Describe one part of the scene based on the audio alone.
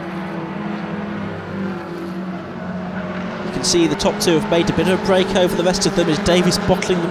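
Racing car engines roar and drone steadily in the distance.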